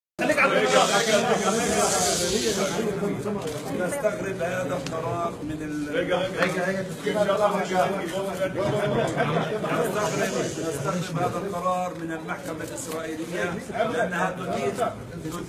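Several people talk over one another in an echoing room.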